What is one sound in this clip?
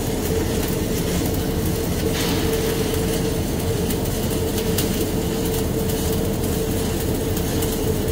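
A welding arc crackles and sizzles steadily.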